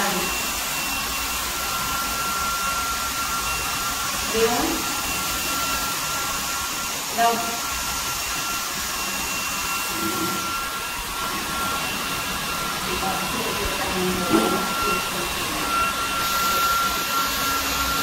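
A hair dryer blows air with a steady whine.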